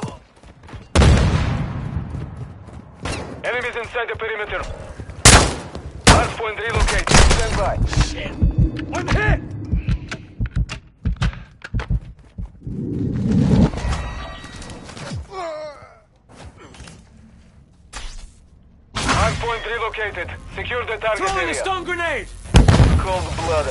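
Gunshots crack and boom in short bursts.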